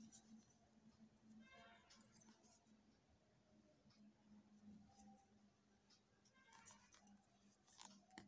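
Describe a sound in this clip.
Yarn rustles softly as it is worked with a crochet hook.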